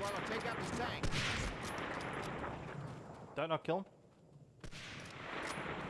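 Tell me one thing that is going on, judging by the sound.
Rifle shots crack out loudly.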